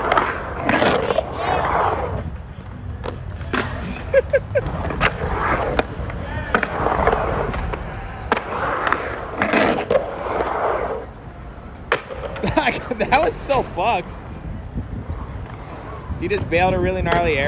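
A skateboard clacks sharply against a concrete edge.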